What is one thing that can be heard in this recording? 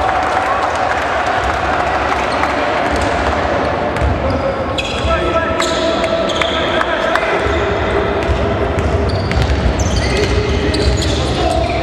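A basketball bounces with dull thumps on the court.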